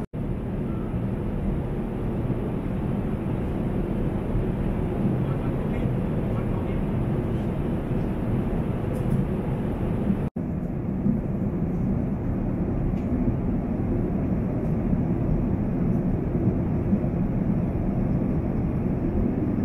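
A jet engine roars steadily, heard from inside an aircraft cabin.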